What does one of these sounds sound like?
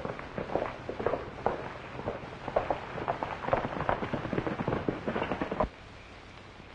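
Horses gallop past, hooves drumming on hard ground.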